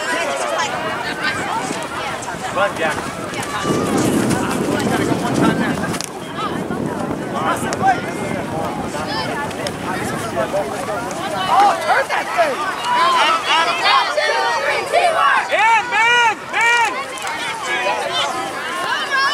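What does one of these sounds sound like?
Young girls shout to each other across an open field.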